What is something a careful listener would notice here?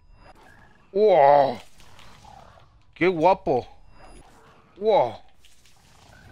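A magical light attack zaps with short bright bursts.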